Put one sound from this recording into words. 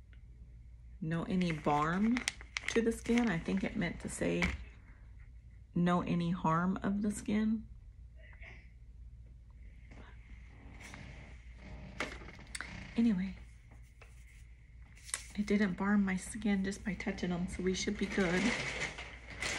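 A middle-aged woman talks calmly and close by.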